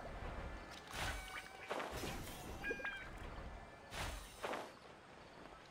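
Magical sparkling chimes ring out in bursts.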